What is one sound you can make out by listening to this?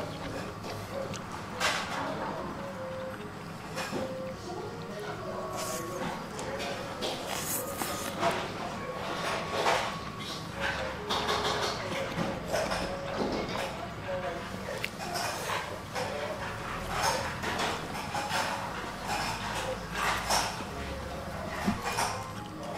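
A young man slurps noodles loudly and chews.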